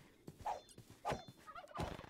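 A pig squeals as it is struck.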